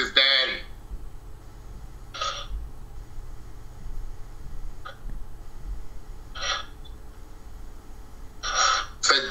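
A middle-aged man speaks in short bursts over an online call.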